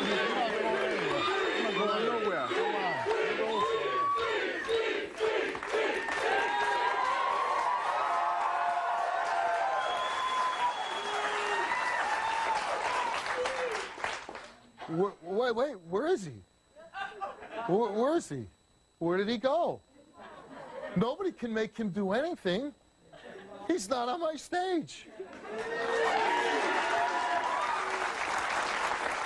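A large audience applauds loudly.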